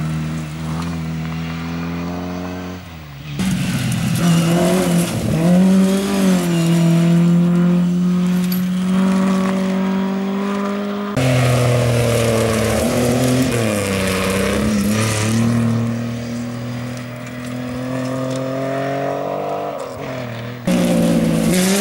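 A rally car engine roars loudly as it races past, revving and changing gear.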